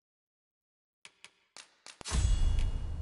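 Soft menu clicks tick several times in quick succession.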